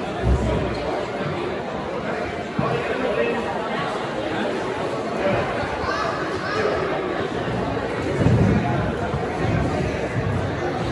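A crowd of adults chatters in a large echoing hall.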